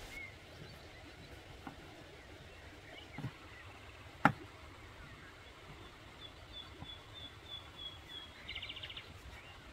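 A knife slices through a tomato on a wooden board.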